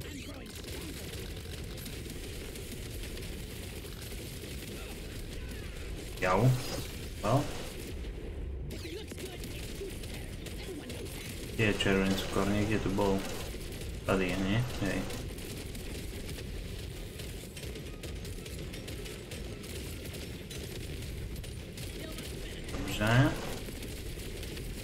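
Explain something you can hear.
Video game shots and blasts crackle steadily.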